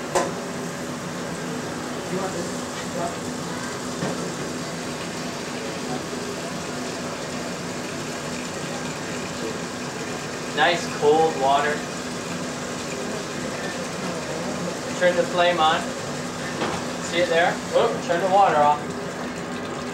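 Water pours from a faucet into a metal pot.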